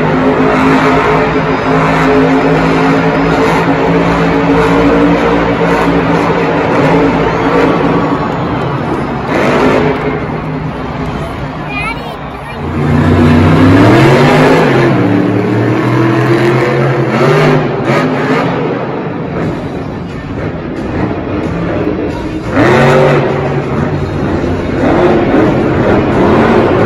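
A monster truck engine roars and revs loudly in a large echoing arena.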